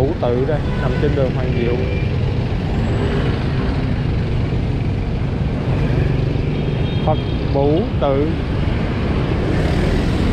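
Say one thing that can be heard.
Motorbike engines hum steadily in busy street traffic.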